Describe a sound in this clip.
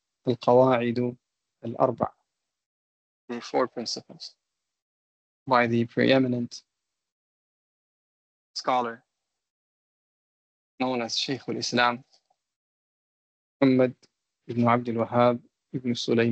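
A man speaks calmly in short phrases with pauses, heard through an online call.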